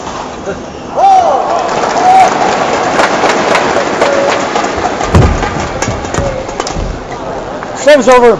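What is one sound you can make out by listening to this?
A crowd cheers and claps loudly in a large echoing hall.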